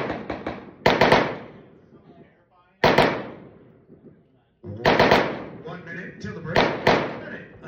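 A rifle fires loud shots that echo across open ground.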